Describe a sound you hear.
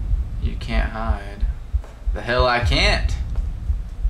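A young man speaks into a close microphone in short, hushed bursts.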